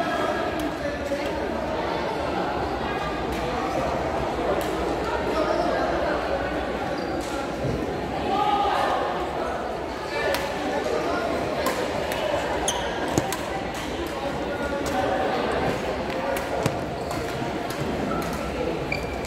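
Shuttlecocks are struck with sharp racket pops.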